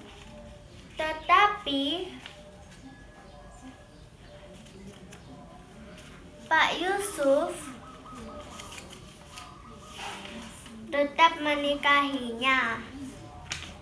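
A young girl speaks close by in short bursts.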